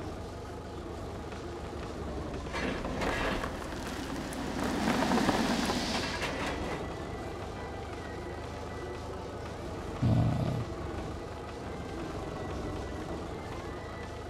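A heavy vehicle's diesel engine rumbles steadily.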